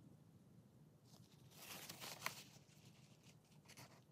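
A tool scrapes and taps along a plastic edge.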